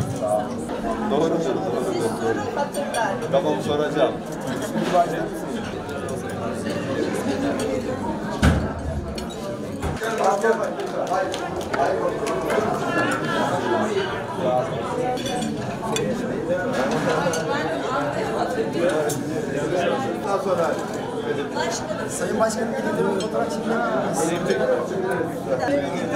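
A man talks with elderly people up close.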